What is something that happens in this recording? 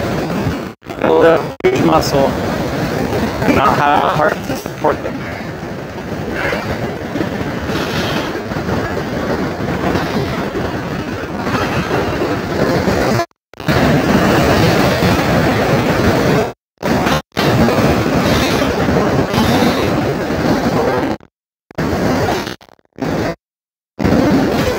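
Waves crash and wash over rocks close by, outdoors in wind.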